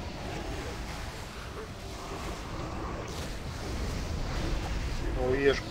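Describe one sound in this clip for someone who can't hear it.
Magic spells whoosh and crackle.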